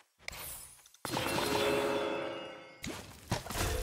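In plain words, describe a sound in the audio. A bright magical whoosh plays as an upgrade is applied.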